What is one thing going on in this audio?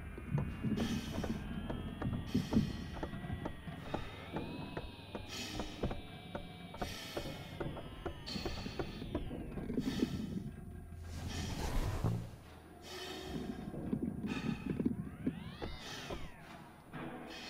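Electronic tones warble and beep from a machine console.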